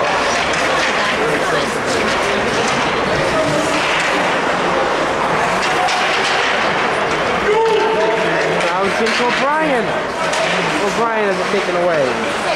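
A crowd of spectators chatters and shouts in a large echoing arena.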